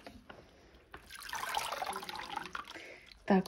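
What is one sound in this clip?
Water splashes softly in a tub.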